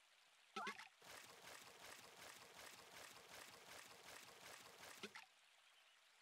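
A fishing reel clicks rapidly as a line is wound in.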